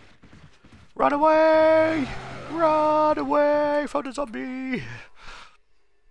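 A zombie lets out a long, low moan.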